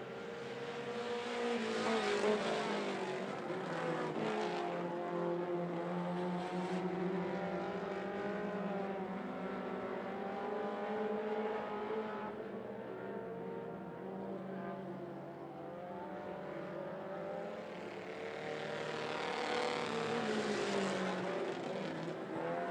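Engines rise and fall in pitch as cars pass close by.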